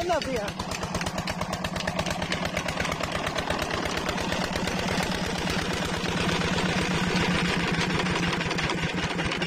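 A diesel engine runs nearby with a steady, fast chugging.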